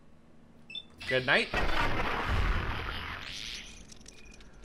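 A gun fires with a loud blast.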